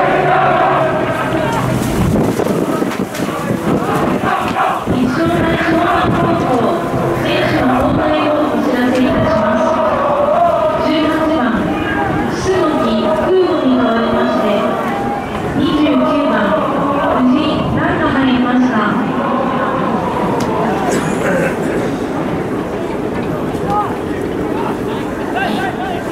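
A large crowd of supporters chants and sings loudly in an open stadium.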